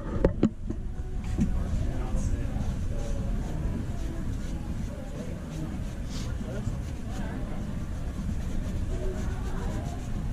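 A cloth rubs briskly against a sneaker.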